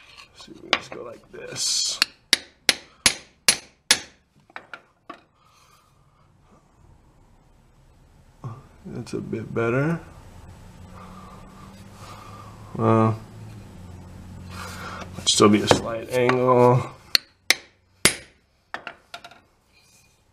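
Metal tools clink and knock against each other close by.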